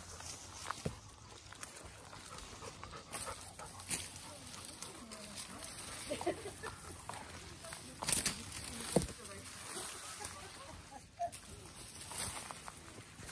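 Bamboo stalks and leaves rustle and swish as someone brushes past them.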